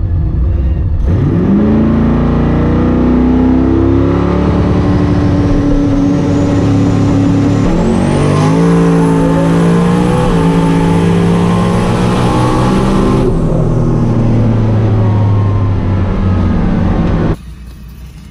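A car engine roars and rises in pitch through gear changes as the car accelerates hard.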